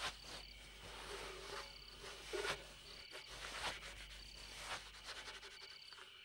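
A small broom scratches and swishes across a dirt floor.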